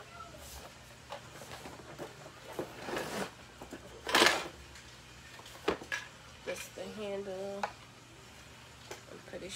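A cardboard box rustles and thumps as it is handled.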